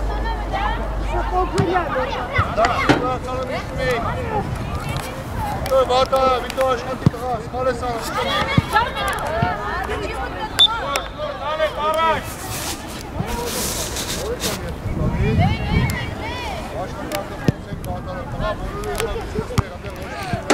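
Young women shout and call out to one another across an open field.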